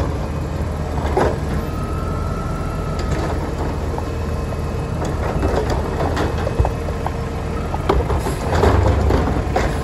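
A mechanical arm on a garbage truck whirs and clanks as it lifts and empties a bin.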